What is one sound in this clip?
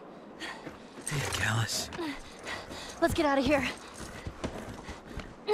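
A horse's hooves shuffle in snow.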